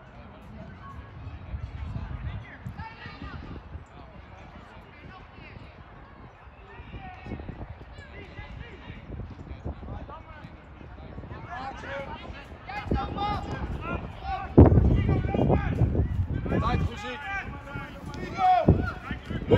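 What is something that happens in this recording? Outdoors, young men shout to each other across a playing field.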